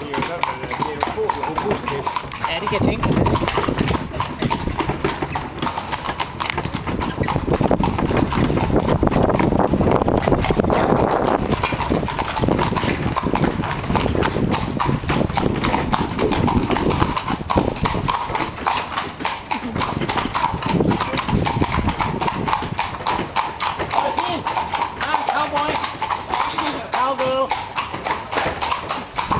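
Carriage wheels rumble and rattle over cobblestones.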